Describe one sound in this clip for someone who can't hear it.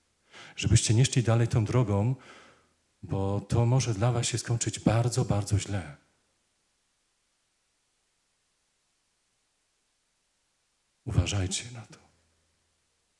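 A man speaks slowly and solemnly into a microphone.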